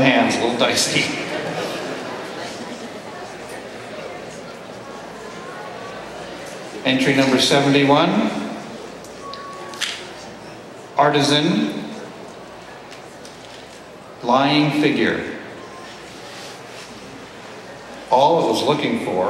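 An elderly man speaks slowly through a microphone in a large echoing hall.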